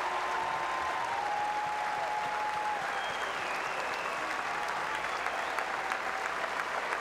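A large crowd chatters and cheers in a vast echoing arena.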